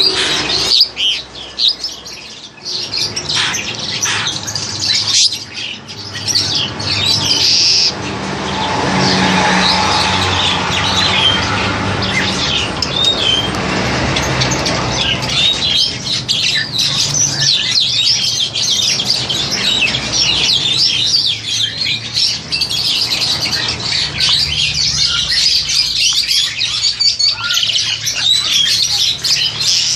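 A black-collared starling calls with loud chattering whistles.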